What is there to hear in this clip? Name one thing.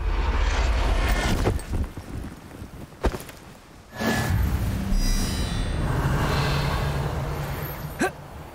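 A magic spell crackles and whooshes from a wand.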